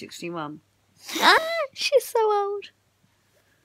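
A young girl squeals playfully close by.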